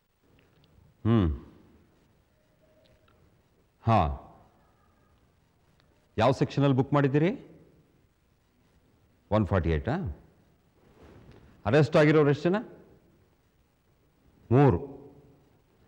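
A middle-aged man speaks into a phone in short, tense bursts.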